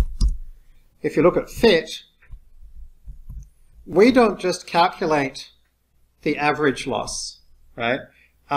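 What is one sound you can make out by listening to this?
A man talks calmly and explains into a close microphone.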